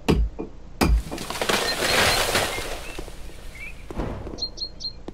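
A tree cracks and crashes down with a long rushing roar.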